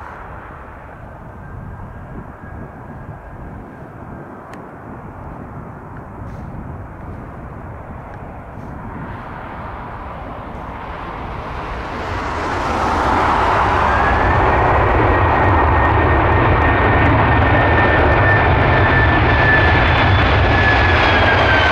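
A jet airliner roars, growing steadily louder and closer.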